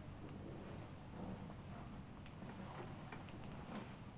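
A cloth sheet rustles as it is pulled back.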